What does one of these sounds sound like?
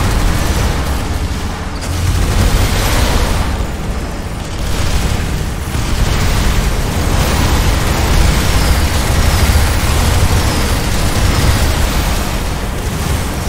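Laser weapons fire and buzz continuously.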